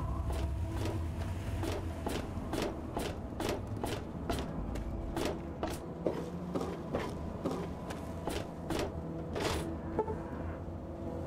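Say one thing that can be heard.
Footsteps clank quickly on metal.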